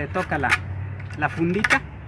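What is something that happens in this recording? A sharp tool scratches across a plastic pipe.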